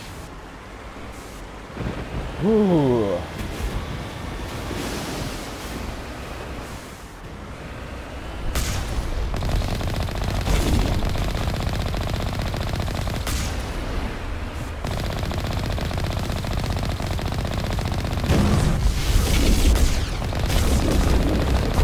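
Water splashes and rushes under vehicle wheels.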